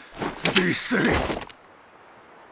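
A man shouts loudly with strain.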